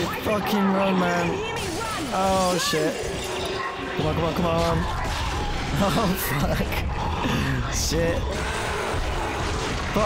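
Heavy boots thud quickly on a metal floor.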